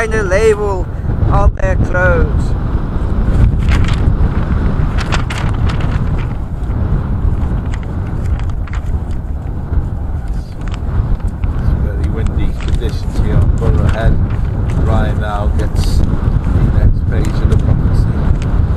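Wind blows hard across an open space, rumbling steadily.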